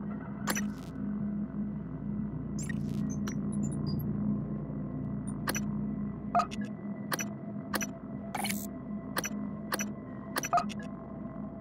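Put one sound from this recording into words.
Short game menu clicks tick now and then.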